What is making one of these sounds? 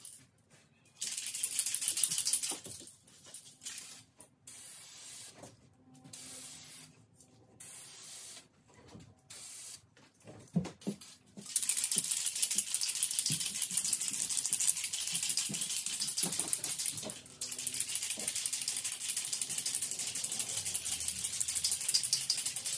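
An aerosol can sprays with a steady hiss.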